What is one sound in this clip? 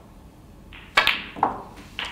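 A cue tip strikes a ball with a sharp click.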